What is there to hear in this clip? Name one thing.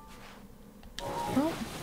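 A shield slides over sand with a hissing scrape.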